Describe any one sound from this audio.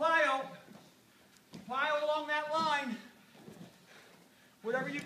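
A man shouts loud instructions in an echoing room.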